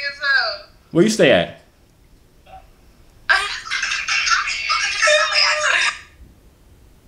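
A young woman speaks playfully through an online call.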